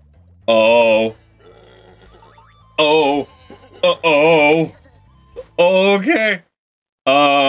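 Cartoon creatures bleat in high, wobbly voices.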